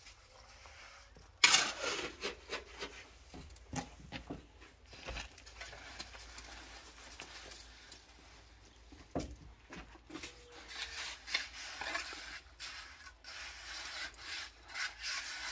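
Concrete blocks knock together as they are set down.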